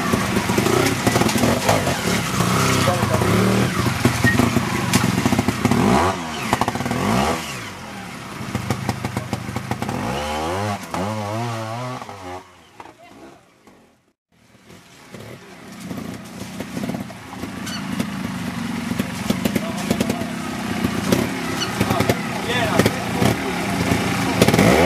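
A trials motorcycle engine revs in bursts as the bike climbs over rocks.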